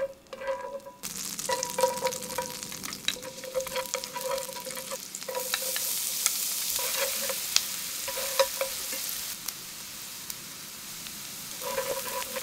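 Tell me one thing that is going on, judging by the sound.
Garlic sizzles and crackles in hot oil in a pan.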